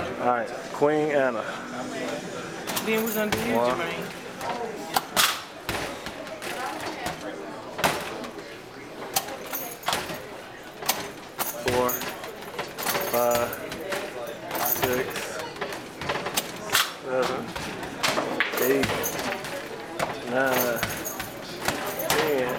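A basketball thuds against a backboard and rattles a metal hoop.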